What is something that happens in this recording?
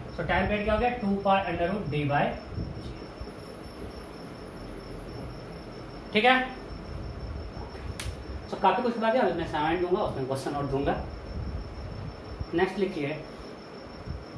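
A man explains in a calm lecturing voice, close by.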